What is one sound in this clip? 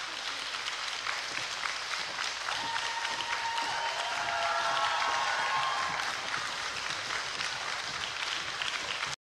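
A large audience applauds in a big echoing hall.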